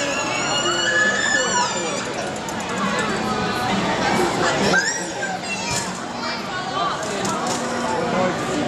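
A crowd of children and adults chatters and squeals in a large echoing hall.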